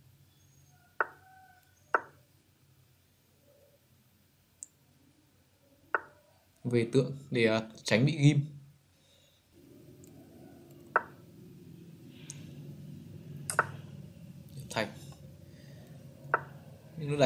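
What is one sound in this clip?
Short wooden clicks sound as chess pieces are moved.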